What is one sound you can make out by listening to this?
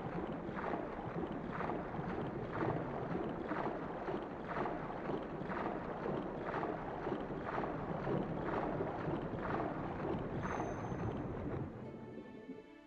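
Water splashes in a quick, steady rhythm as a swimmer strokes.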